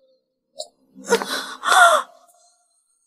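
A young woman groans in pain close by.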